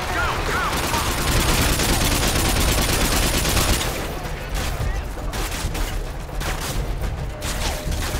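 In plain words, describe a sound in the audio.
Rapid gunfire bursts crackle from a video game.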